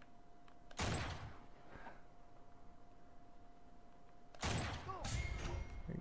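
A rifle fires a loud shot that echoes.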